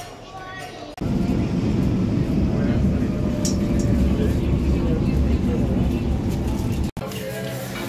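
A subway train rumbles loudly along the tracks.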